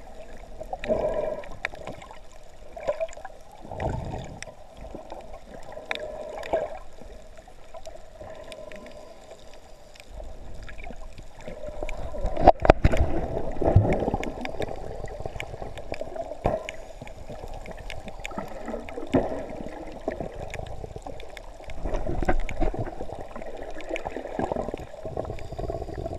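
Water swirls and rumbles, heard muffled from underwater.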